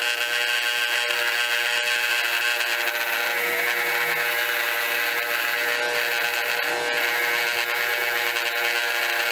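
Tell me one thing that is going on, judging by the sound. A bench grinder motor hums steadily.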